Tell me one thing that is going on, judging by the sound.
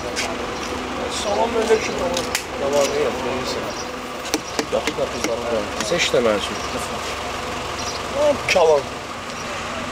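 Men talk with animation nearby, outdoors.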